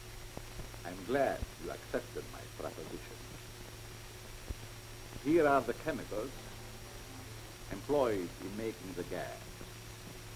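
A second middle-aged man speaks with emphasis, close by.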